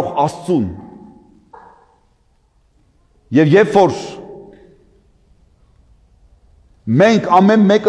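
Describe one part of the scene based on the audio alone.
An elderly man chants in a deep, sung voice, echoing in a large hall.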